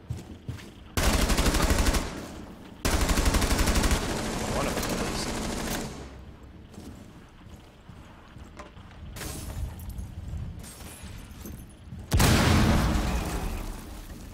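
A rifle fires loud rapid bursts at close range.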